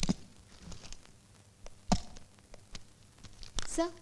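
A suitcase thumps down on a desk.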